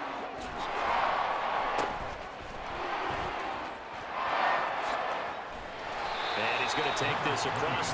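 A large stadium crowd cheers and roars in waves.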